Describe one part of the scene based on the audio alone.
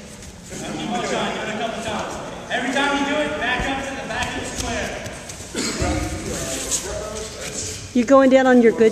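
A young man speaks with animation to a group in a large echoing hall.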